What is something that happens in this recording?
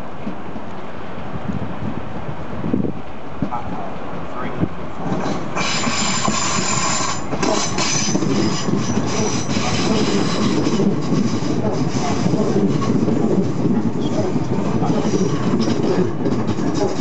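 An electric train rumbles into the platform and rolls past close by.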